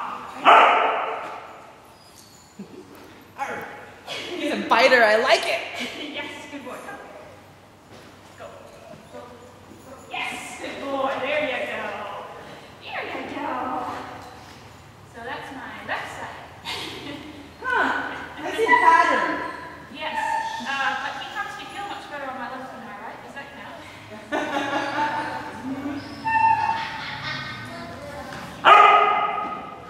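A man talks to a dog with animation, echoing in a large hall.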